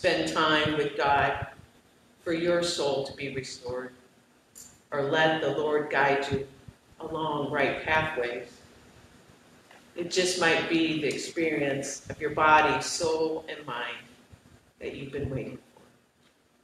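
A middle-aged woman speaks calmly into a microphone in an echoing hall.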